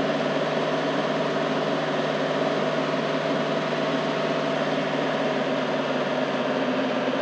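A game vehicle's engine roars steadily.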